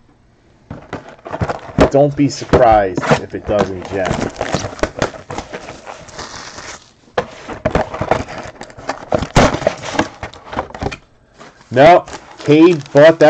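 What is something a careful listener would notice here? Cardboard boxes and card packs knock and slide on a table.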